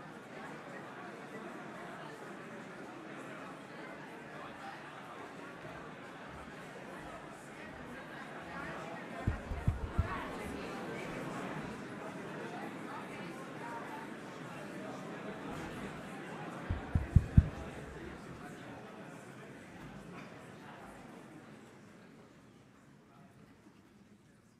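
A large audience chatters and murmurs in an echoing hall, then falls quiet.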